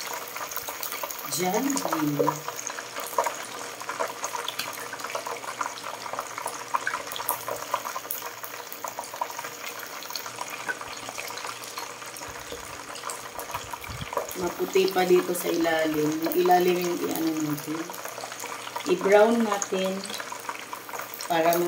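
Tongs tap and scrape against the side of a pot.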